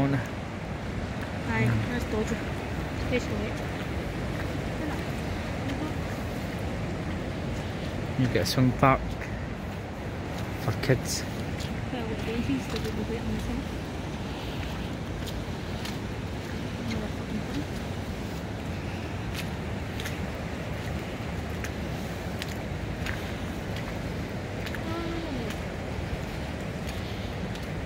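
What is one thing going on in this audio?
Wind blows outdoors, rustling through bushes and trees.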